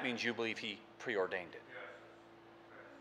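A middle-aged man speaks with emphasis through a microphone in a large room.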